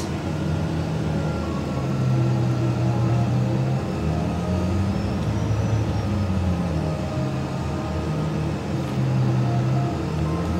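A truck engine idles with a low, wavering drone.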